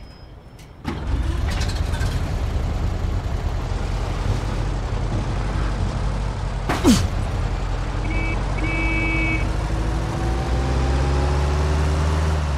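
A car engine rumbles and revs as a car drives along a road.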